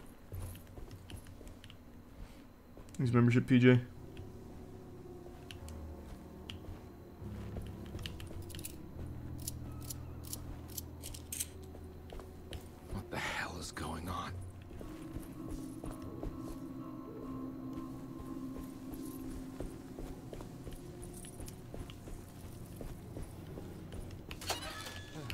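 Footsteps tap on stone pavement.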